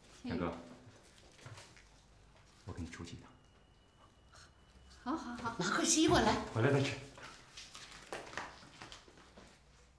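A young man speaks casually, close by.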